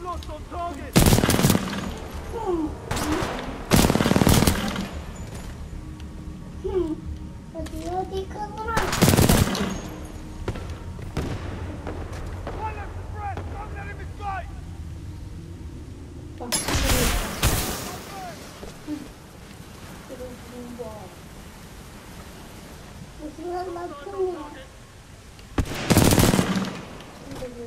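A rifle fires loud bursts of shots, close by.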